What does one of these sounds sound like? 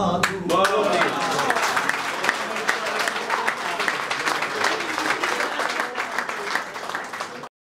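A small audience claps and applauds.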